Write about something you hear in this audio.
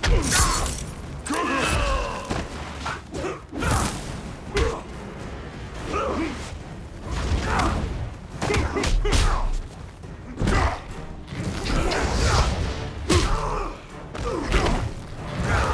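Fighters grunt and yell as they strike.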